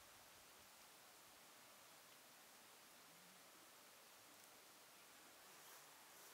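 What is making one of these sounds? A small wood fire crackles softly.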